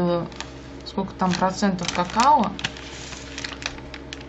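A paper and foil wrapper crinkles as it is folded.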